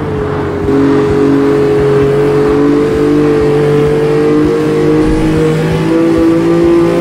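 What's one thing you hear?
A car engine drones steadily at high revs.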